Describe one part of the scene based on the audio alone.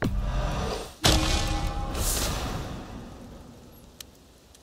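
A bright, shimmering chime rings out and slowly fades.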